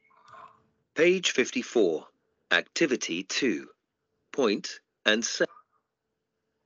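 A woman speaks clearly and slowly over an online call, in short phrases.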